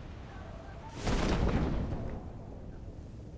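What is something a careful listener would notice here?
Wind rushes loudly as a parachute snaps open.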